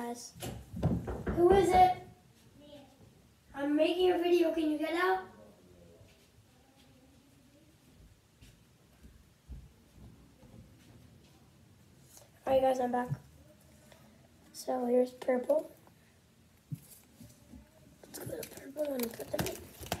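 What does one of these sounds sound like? A young child talks close by in short bursts.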